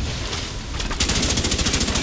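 A minigun fires a rapid, loud stream of gunshots.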